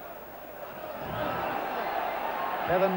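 A large stadium crowd roars louder as play moves forward.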